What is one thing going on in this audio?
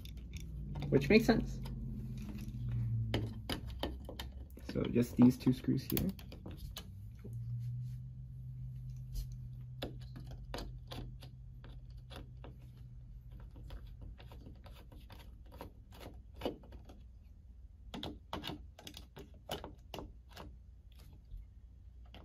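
A screwdriver scrapes and clicks against small metal parts.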